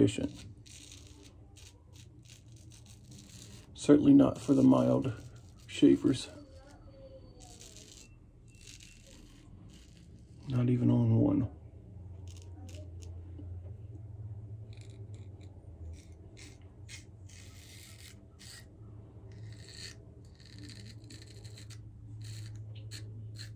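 A razor scrapes softly through stubble in short strokes, close by.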